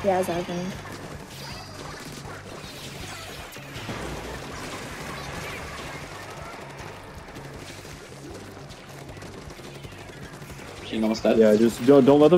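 Wet splattering shots fire in quick bursts.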